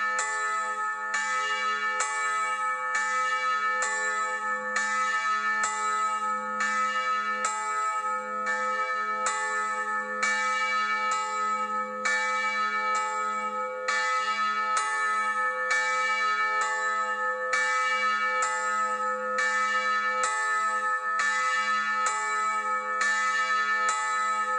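Church bells ring out in a steady, repeating peal outdoors.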